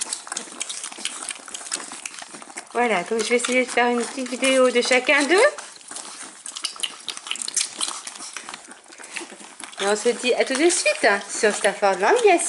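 Puppies suckle with soft, wet smacking sounds.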